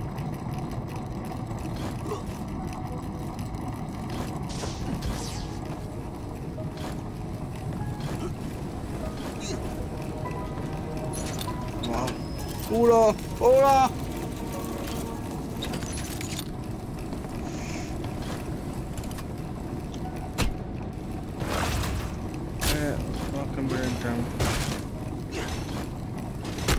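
Heavy machinery rumbles steadily and low.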